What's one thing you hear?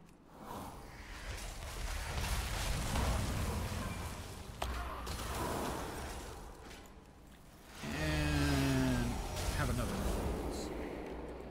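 Magic spells crackle and whoosh in a game.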